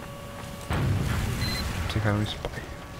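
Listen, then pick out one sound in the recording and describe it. A video game explosion booms loudly.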